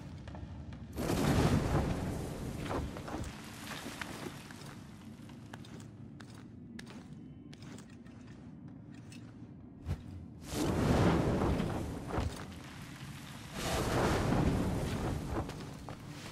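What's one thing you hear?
A deep rushing whoosh swells and fades several times.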